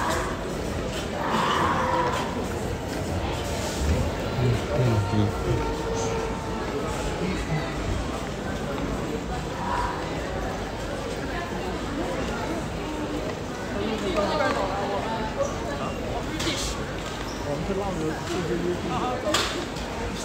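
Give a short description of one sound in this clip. A suitcase rolls on wheels across a hard floor.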